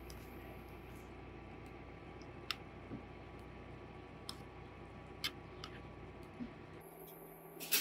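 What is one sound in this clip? A spoon scrapes and clinks against a bowl.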